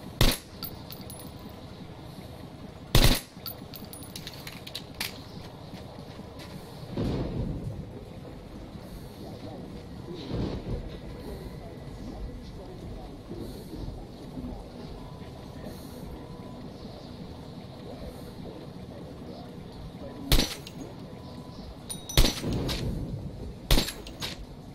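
Gunshots ring out sharply, a few times.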